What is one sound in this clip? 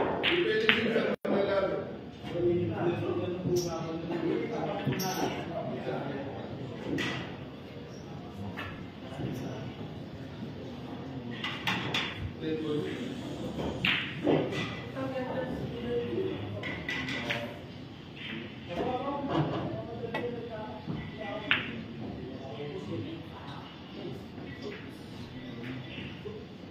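Pool balls knock together and roll across the table.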